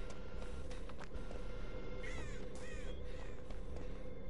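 Quick footsteps patter on stone.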